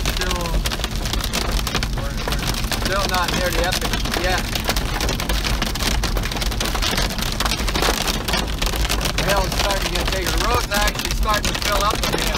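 Windshield wipers swish back and forth.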